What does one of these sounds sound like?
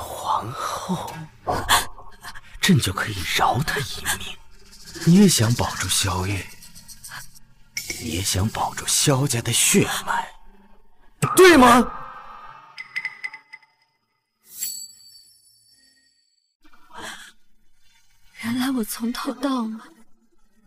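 A young man speaks with feeling close by.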